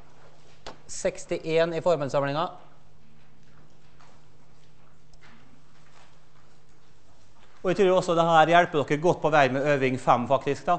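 A man lectures calmly through a microphone in a large room.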